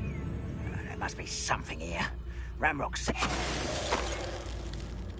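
A magic spell whooshes and crackles.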